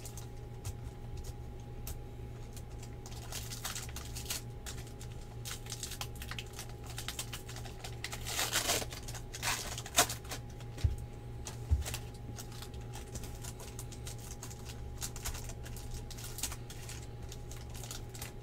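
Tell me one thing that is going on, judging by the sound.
Trading cards shuffle and rustle between fingers.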